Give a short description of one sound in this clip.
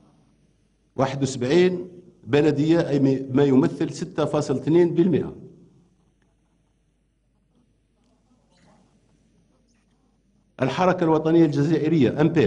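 A middle-aged man reads out a speech through a microphone and loudspeakers in a large hall.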